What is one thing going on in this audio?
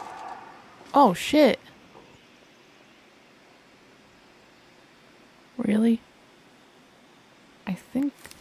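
A young woman speaks briefly and with animation, close to a microphone.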